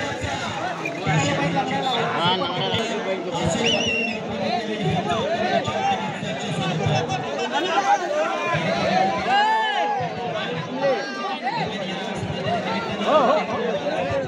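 A large outdoor crowd of men shouts and cheers loudly.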